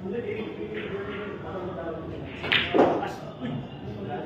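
A cue strikes a billiard ball sharply.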